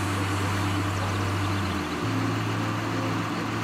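Grain pours down in a heavy, rushing stream.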